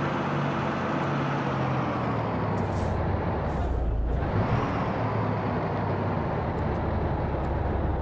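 Tyres roll on the road with a steady rushing noise.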